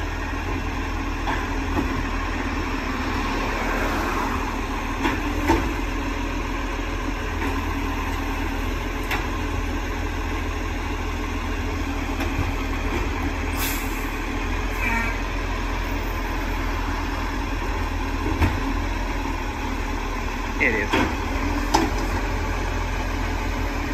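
A garbage truck's arm whirs and clanks as it lifts and empties a bin.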